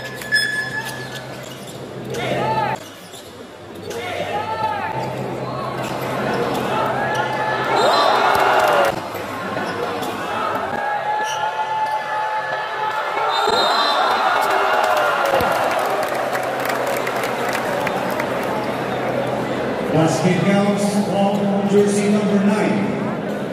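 Sneakers squeak sharply on a court.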